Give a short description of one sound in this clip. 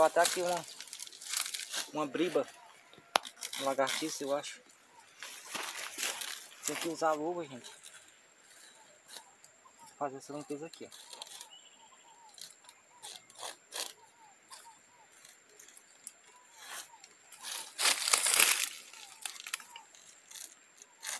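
Dry palm fibres rustle and tear as hands pull them from a trunk.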